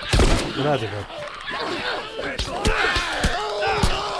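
A man grunts.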